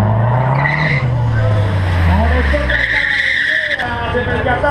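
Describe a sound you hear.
A car engine revs up and down close by.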